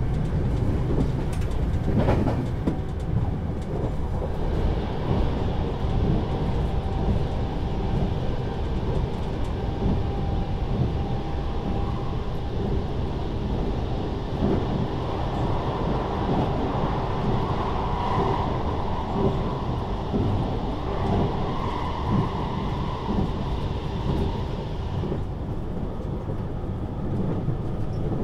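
A train rumbles and clatters steadily along the tracks, heard from inside a carriage.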